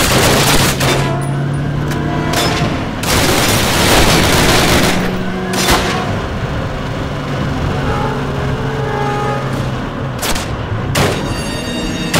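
A vehicle engine rumbles steadily while driving.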